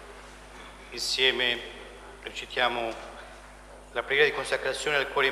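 Several men sing together loudly in a large echoing hall.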